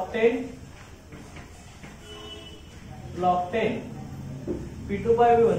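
A man speaks in a lecturing tone, heard through a microphone.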